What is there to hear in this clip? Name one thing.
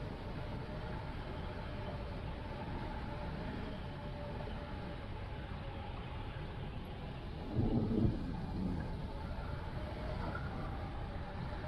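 Wind rushes steadily past in flight outdoors.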